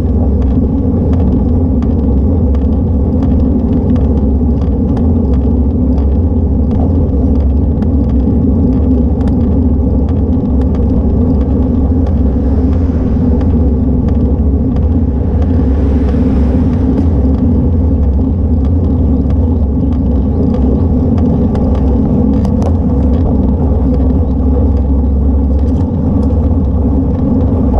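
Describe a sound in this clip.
Bicycle tyres hum on smooth tarmac.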